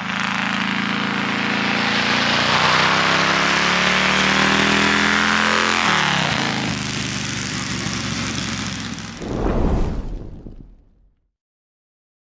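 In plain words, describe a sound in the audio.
A motorcycle engine revs loudly, then roars away and fades.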